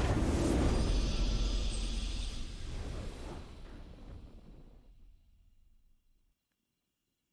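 A triumphant game fanfare rings out and slowly fades away.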